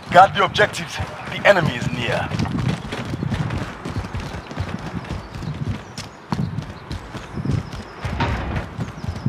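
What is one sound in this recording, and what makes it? Footsteps thud quickly over hard ground.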